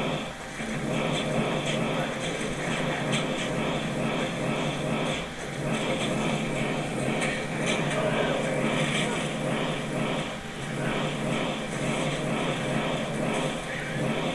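Fire spells roar and burst again and again.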